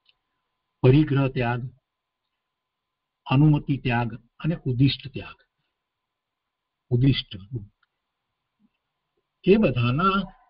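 An elderly man speaks calmly in short phrases through an online call.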